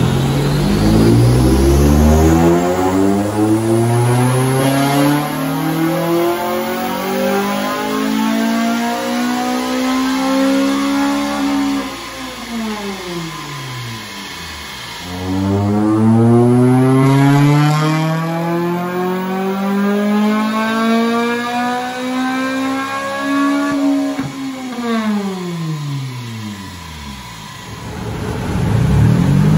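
A car engine revs up hard through a loud exhaust, then drops back to idle.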